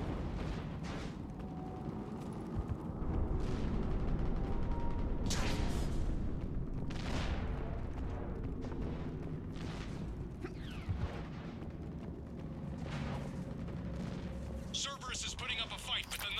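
Heavy armoured boots thud on hard ground.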